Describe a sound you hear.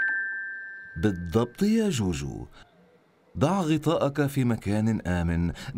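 A man speaks in a playful, sing-song character voice.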